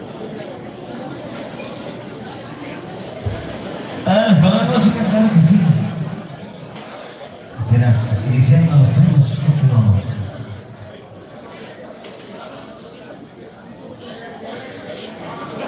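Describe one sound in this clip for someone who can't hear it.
A crowd chatters in a noisy, echoing hall.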